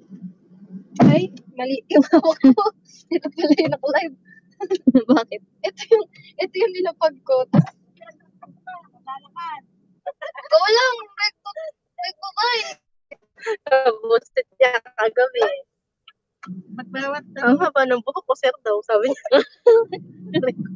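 A young woman talks with animation close to a phone microphone.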